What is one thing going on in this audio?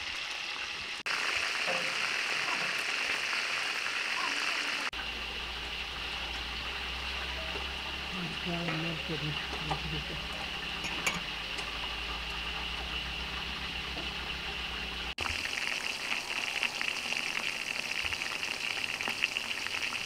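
Oil sizzles and bubbles in a pot.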